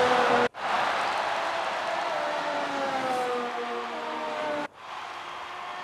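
A racing car engine whines at high speed and its pitch slowly drops.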